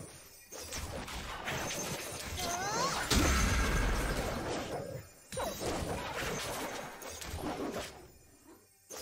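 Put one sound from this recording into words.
Magic spells whoosh and crackle in a fantasy battle game.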